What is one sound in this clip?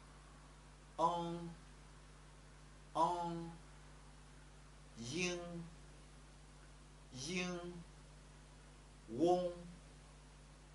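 A man speaks single syllables slowly and clearly into a close microphone, pausing between each.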